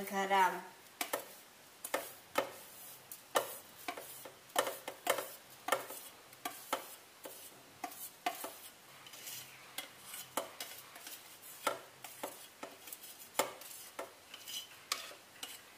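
A spoon scrapes and taps against a metal bowl.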